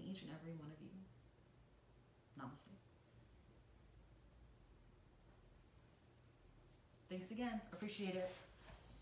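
A young woman speaks calmly and softly nearby.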